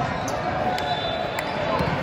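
A volleyball bounces on a wooden floor.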